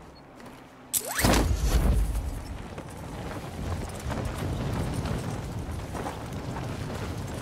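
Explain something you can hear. Wind roars and rushes past a falling skydiver.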